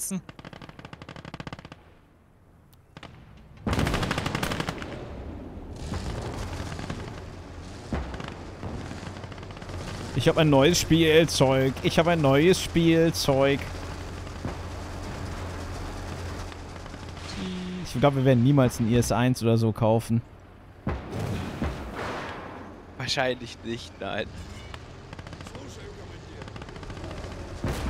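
Heavy guns fire with booming blasts.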